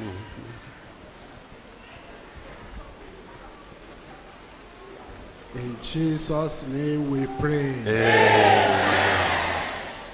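A crowd of men and women pray aloud together.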